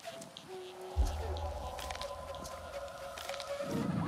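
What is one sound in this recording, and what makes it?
A soft chime rings as a menu opens.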